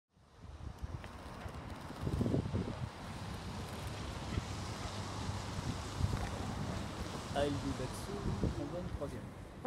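Wind gusts and buffets outdoors.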